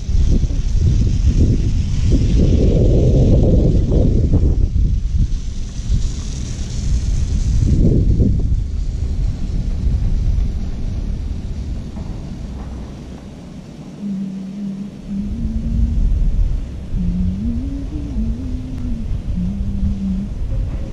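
Wind rumbles and buffets loudly outdoors.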